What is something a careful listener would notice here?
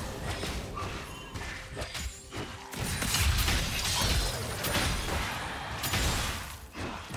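Game spell effects crackle and burst in a fast skirmish.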